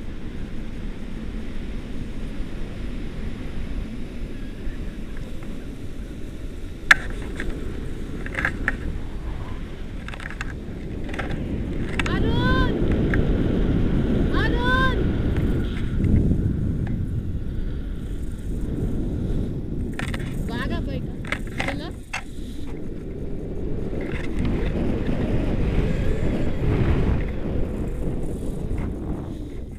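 Wind rushes and buffets against the microphone in flight.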